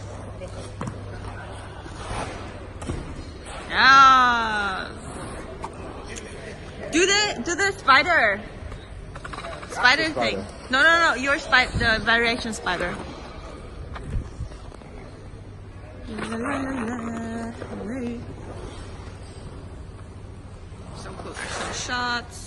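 Ice skate blades scrape and carve across the ice.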